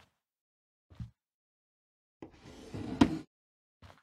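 A drawer slides open.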